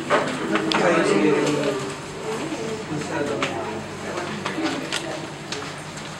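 A microphone stand rattles and clicks as it is adjusted.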